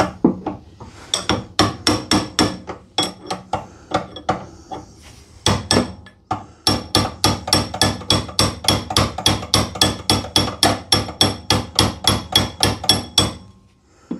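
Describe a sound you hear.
A socket ratchet clicks as it turns a bolt.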